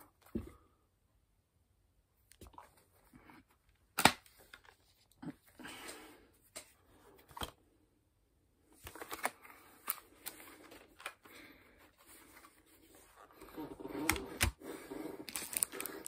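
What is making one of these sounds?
Plastic disc cases click and rattle in hands.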